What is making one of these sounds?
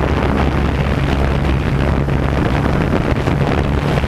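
A motorcycle engine hums along a road.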